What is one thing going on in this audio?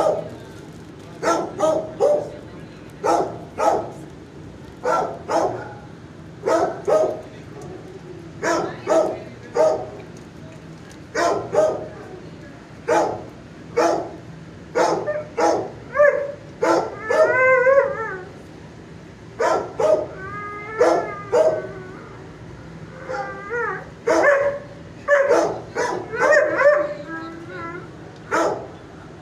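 A dog laps water noisily from a metal bowl.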